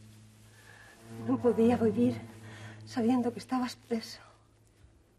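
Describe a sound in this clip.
A woman speaks softly up close.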